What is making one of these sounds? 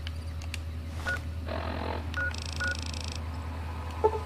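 A handheld device chirps with short electronic beeps.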